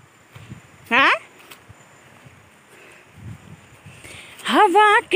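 Footsteps tread softly on a grassy path.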